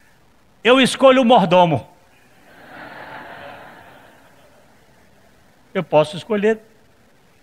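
A middle-aged man speaks loudly and with animation.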